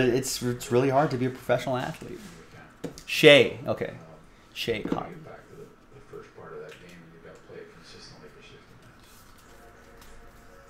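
Trading cards rustle and slide as they are flipped through.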